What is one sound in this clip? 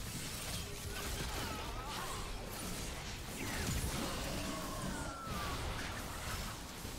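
Game spells and weapons clash and crackle in a busy fight.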